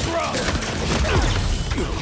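Electric blasts crackle and zap.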